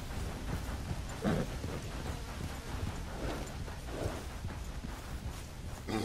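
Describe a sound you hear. A horse's hooves thud slowly on a dirt path.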